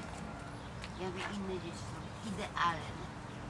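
A woman talks quietly nearby.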